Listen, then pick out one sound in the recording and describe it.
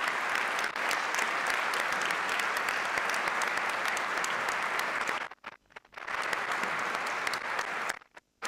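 A large crowd applauds in a large echoing hall.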